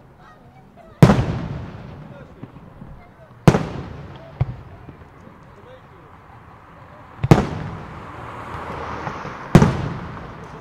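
Fireworks burst with loud booming bangs that echo outdoors.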